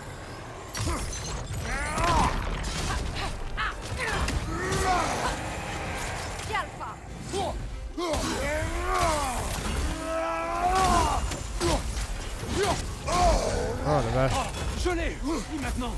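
An axe strikes with heavy, ringing blows.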